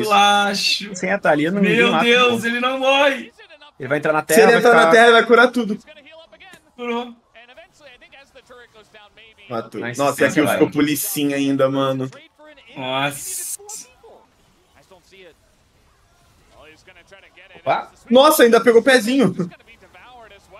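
Young men talk excitedly through microphones, in bursts.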